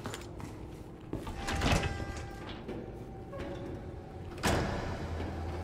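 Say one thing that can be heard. A heavy door opens with a loud thud.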